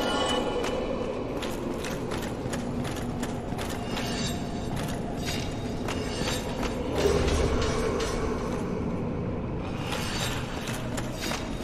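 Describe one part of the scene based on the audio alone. Armoured footsteps clank steadily on stone.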